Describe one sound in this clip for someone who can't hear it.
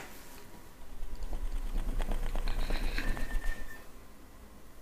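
Hands rapidly drum and pat on a bare back.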